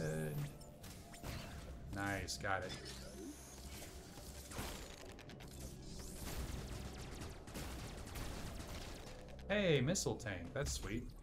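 Electronic blaster shots fire in a video game.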